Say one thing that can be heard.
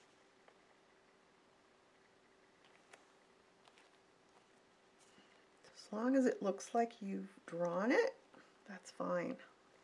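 Paper rustles softly as hands press and smooth it.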